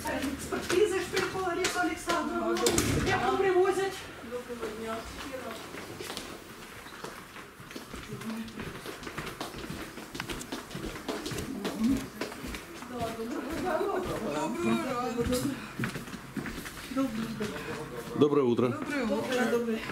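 Footsteps climb stairs and walk along a hallway.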